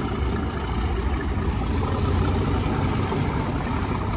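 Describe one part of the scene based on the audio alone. An electric train motor whines, rising slowly in pitch.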